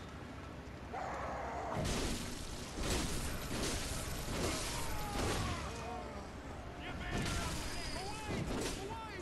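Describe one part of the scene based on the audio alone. Enemies groan and shriek in pain.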